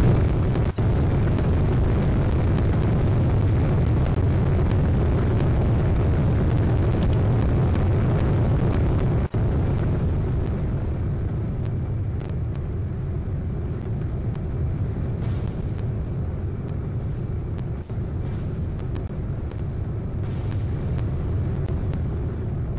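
Rocket thrusters roar steadily, growing quieter after a while.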